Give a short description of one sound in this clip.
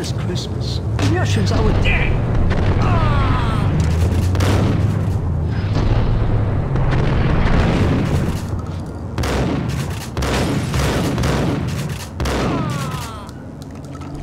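Shotguns fire loud blasts that echo in a room.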